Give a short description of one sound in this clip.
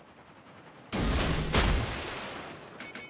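A heavy naval gun fires with a loud boom.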